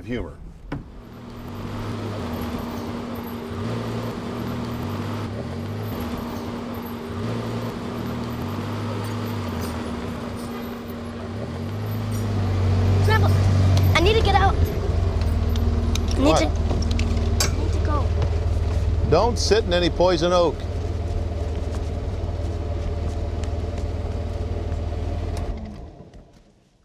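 A small utility vehicle's engine hums steadily as it drives along a dirt track.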